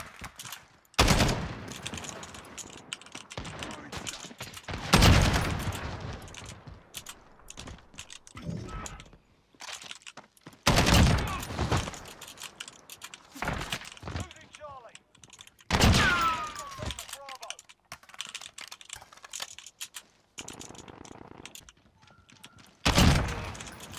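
Single loud rifle shots ring out and echo.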